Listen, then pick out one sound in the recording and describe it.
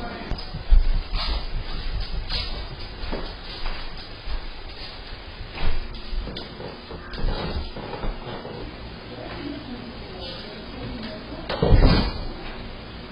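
A young woman calls out sharply from across the room, heard through a small distant microphone.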